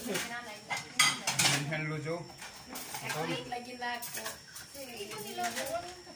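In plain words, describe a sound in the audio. People chatter and laugh in the background.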